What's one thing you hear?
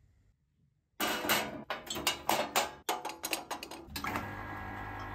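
Metal parts clatter as they are set down.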